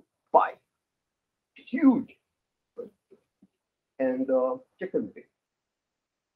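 A man speaks through a microphone in short bursts.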